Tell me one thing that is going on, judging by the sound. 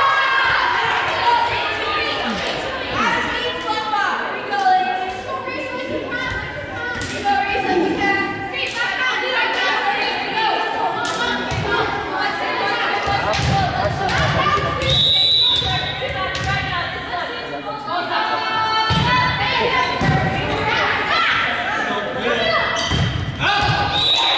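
Young women's voices chatter and call out across a large echoing gym.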